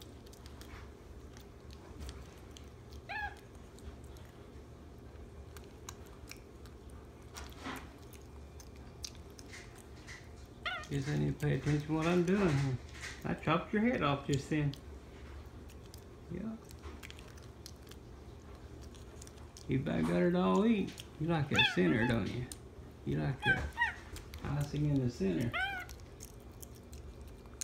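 A monkey chews and nibbles on food close by.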